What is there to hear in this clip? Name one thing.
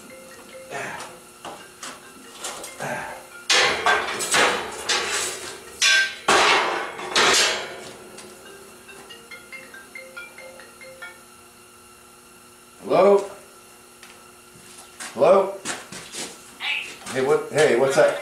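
Metal rods clank and rattle as a man handles a frame.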